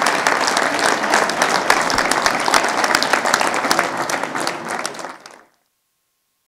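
A crowd applauds loudly in a large echoing hall.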